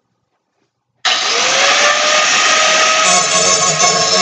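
A drill press whirs as it drills into metal.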